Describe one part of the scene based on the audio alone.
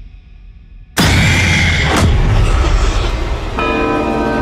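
A creature lets out a sudden, loud, harsh shriek.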